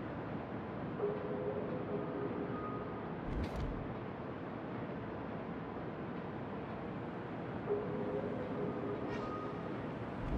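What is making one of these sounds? A warship's engines rumble steadily as it cuts through the sea.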